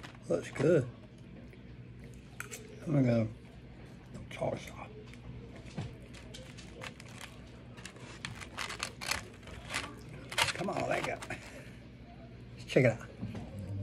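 A fork scrapes and clicks against a plate.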